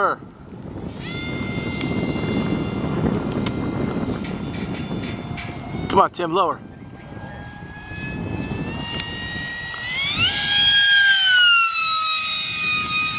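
A small jet engine whines high overhead, its pitch rising and falling.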